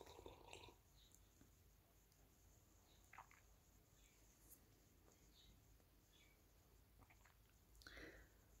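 A woman sips a drink and swallows close by.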